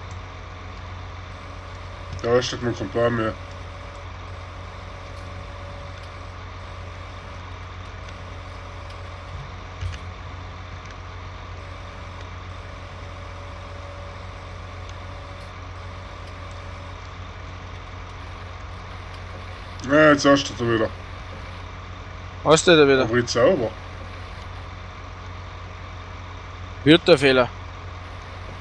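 A heavy machine engine hums steadily.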